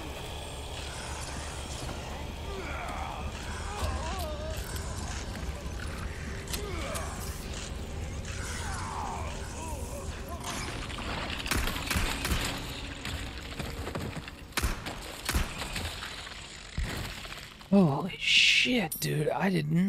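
A man speaks close to a microphone, with animation.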